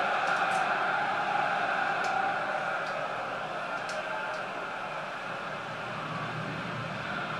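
A stadium crowd roars steadily in the distance.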